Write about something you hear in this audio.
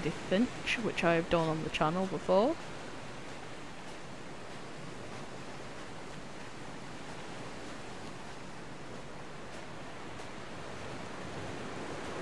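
Waves wash softly onto a shore.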